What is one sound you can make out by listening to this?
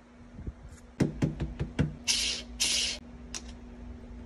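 Metal parts clink and tap as a portafilter is handled.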